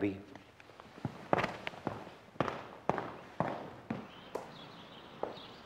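Footsteps tap slowly on a hard floor.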